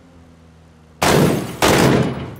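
A rifle fires two loud, sharp shots that boom and echo.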